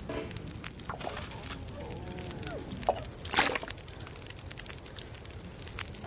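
A fire crackles in a hearth.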